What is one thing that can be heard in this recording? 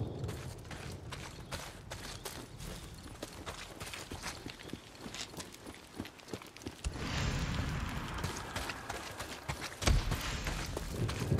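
Footsteps crunch on grass and gravel at a steady walking pace.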